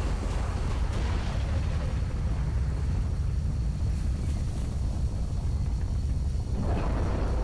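A spacecraft engine hums with a deep, steady rumble.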